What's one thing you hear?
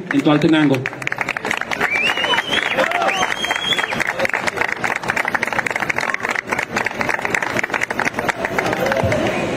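People clap and applaud.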